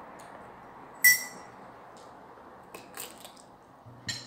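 A woman crunches a bite of cucumber.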